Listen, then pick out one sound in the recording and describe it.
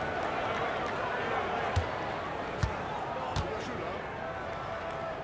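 A large crowd murmurs steadily in a big arena.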